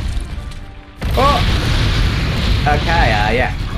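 A fiery explosion booms and crackles.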